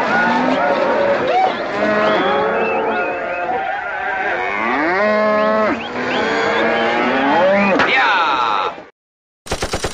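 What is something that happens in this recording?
Elephants trumpet loudly.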